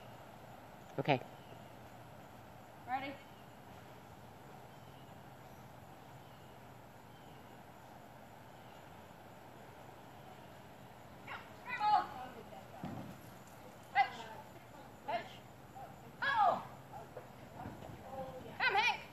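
A woman calls out short commands to a dog, some distance away outdoors.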